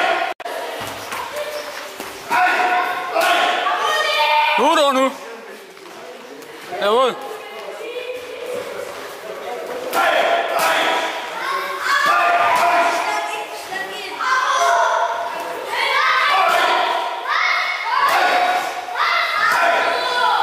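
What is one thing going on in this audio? Gloved punches thud on hand pads.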